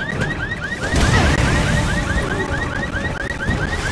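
Flames burst up with a loud roaring whoosh.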